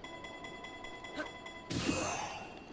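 A chiming tone rings steadily.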